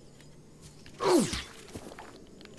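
A blade slashes with a sharp whoosh.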